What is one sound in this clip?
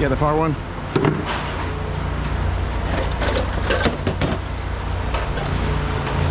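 Scrap metal clanks and rattles as it is handled.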